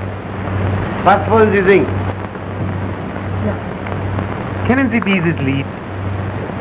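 A man speaks in short, lively bursts.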